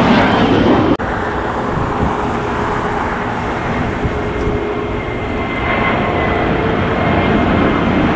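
A second twin-engine jet airliner roars as it climbs after takeoff.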